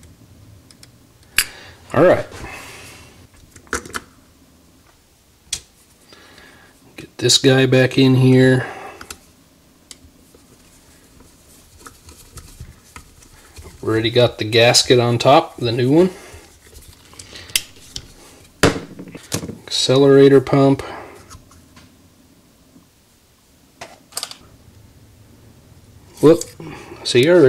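Small metal parts of a carburetor click and clink as they are handled.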